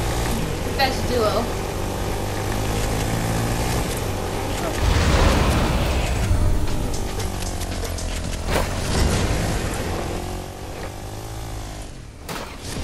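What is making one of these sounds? A quad bike's engine drones steadily.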